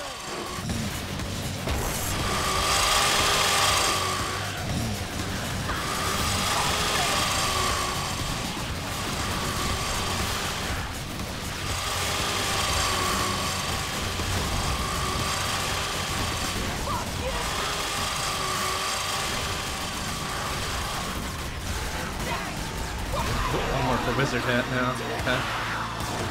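Fast electronic music with a repeating tune plays throughout.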